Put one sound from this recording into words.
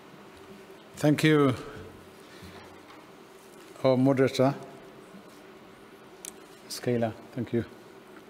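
A man speaks calmly into a microphone in short phrases, with pauses between them.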